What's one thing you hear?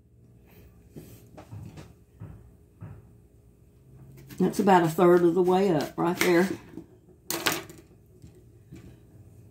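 A knife slices through an onion with soft crunching clicks.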